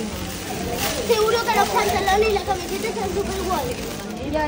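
Young girls chatter and squeal excitedly nearby.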